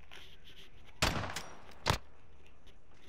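A rifle fires sharp gunshots.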